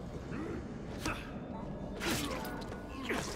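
A blade stabs into flesh with wet thuds.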